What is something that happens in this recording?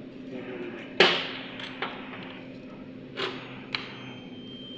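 Metal clamps clack onto battery terminals.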